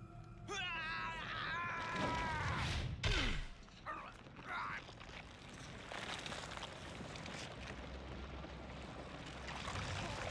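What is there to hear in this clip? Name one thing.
A fleshy tentacle writhes with wet, squelching sounds.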